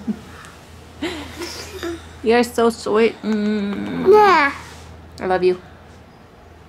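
A toddler babbles, close up.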